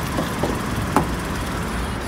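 A car door latch clicks open.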